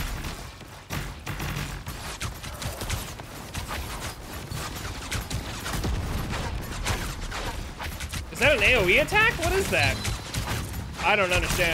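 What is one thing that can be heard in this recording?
Video game blasts, hits and magic effects crackle and boom.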